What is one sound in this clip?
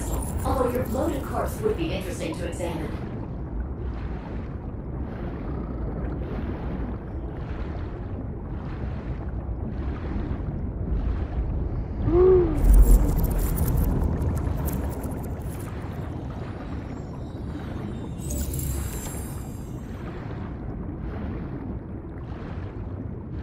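A swimmer strokes steadily through water, muffled underwater.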